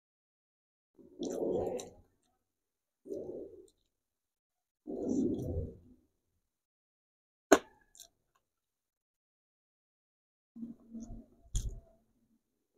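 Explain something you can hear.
A man chews and smacks his lips on food close to the microphone.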